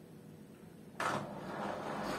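A washing machine clicks as it starts.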